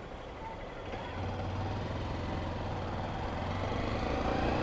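Wind rushes past the motorcycle.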